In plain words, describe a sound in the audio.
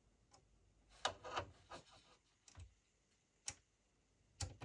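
Metal test probes tap against metal parts with small sharp clicks.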